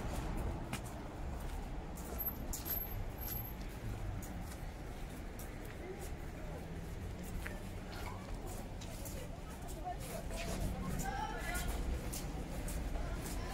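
Footsteps tap along a pavement outdoors.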